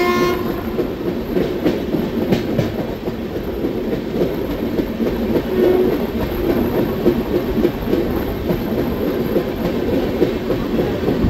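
Wind rushes loudly past an open train window.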